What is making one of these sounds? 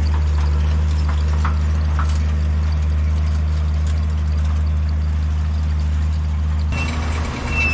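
A tractor engine drones steadily at a distance.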